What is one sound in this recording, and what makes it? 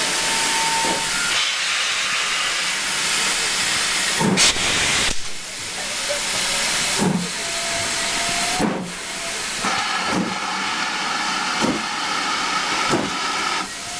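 A steam locomotive chuffs in heavy, regular beats as it pulls away.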